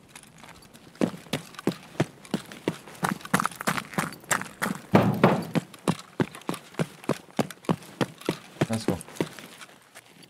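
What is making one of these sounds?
Footsteps crunch quickly and steadily on hard ground.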